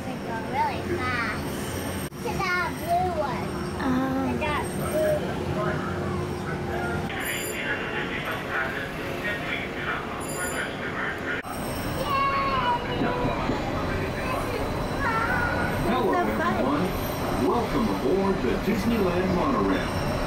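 A monorail cabin rumbles steadily while riding.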